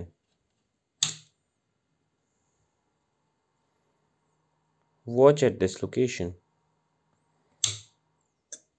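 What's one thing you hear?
A small button clicks.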